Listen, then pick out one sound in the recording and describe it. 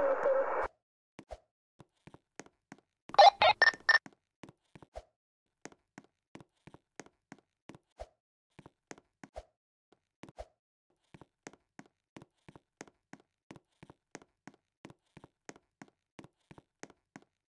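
Footsteps crunch quickly and steadily on snow.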